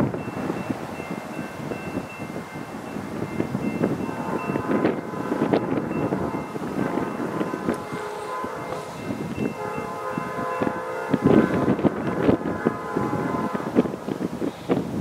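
A train horn blows repeatedly in the distance.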